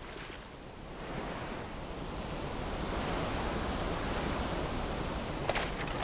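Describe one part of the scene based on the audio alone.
Water churns and splashes around a moving boat.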